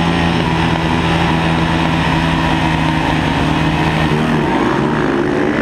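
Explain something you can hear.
A motorcycle engine roars loudly up close, its pitch shifting as the rider works the throttle.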